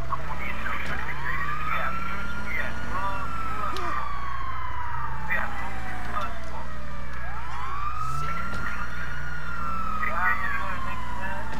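A car engine revs as the car drives fast.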